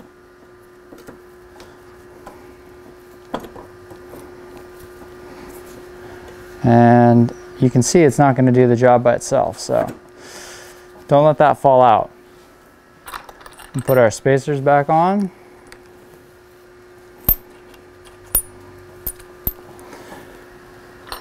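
A metal post knocks and clicks softly inside a bicycle frame.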